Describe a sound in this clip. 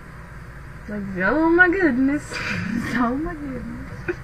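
A teenage girl laughs loudly.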